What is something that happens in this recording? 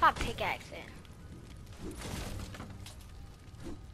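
A pickaxe swings and thuds.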